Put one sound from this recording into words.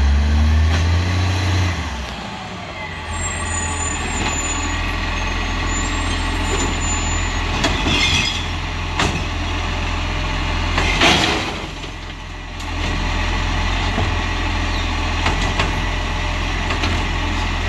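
A garbage truck's diesel engine idles with a low rumble nearby.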